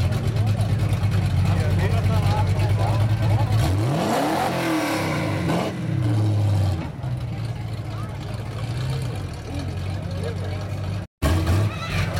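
A hot rod engine rumbles through open exhaust pipes as it pulls away.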